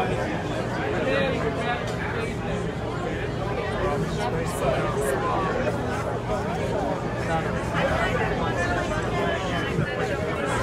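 A crowd of people chatters and calls out nearby, outdoors.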